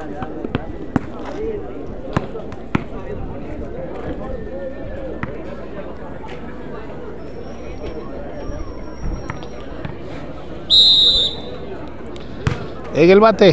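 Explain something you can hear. A ball thumps on hard ground.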